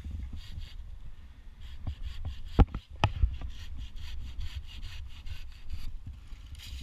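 A hand saw cuts through a branch with quick rasping strokes.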